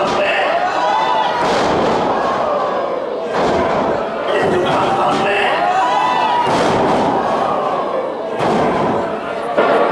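A crowd chatters and cheers in an echoing hall.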